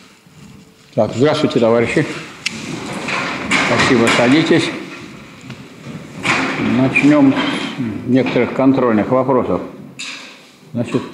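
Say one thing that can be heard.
A man speaks calmly in an echoing hall.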